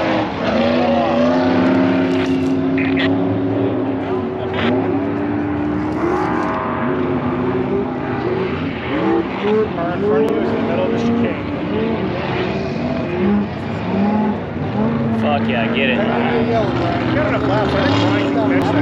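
Dirt bike engines whine and rev across an open track outdoors.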